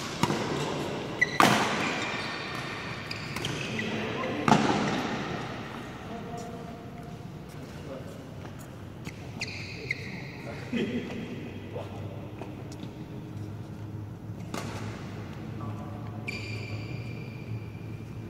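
Young men call out and talk across a large echoing hall.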